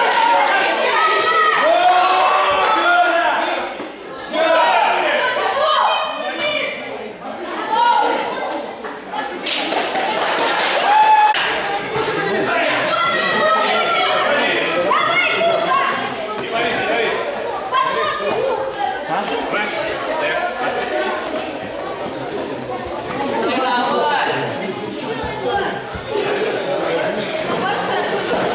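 A crowd of children and adults chatters and shouts in a large echoing hall.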